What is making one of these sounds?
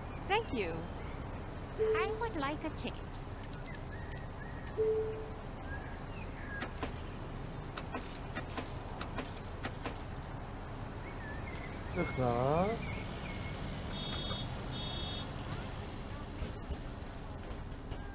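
A ticket machine beeps and clicks as buttons are pressed.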